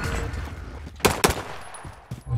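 A pistol fires a sharp shot.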